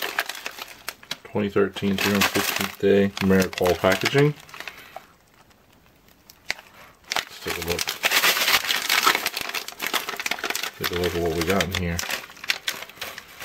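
A plastic food pouch crinkles as hands handle it.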